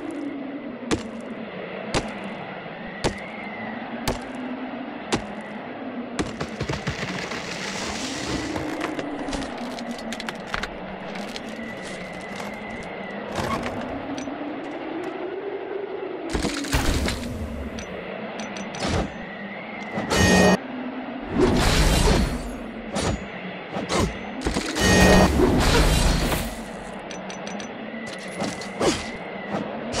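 Game music plays steadily.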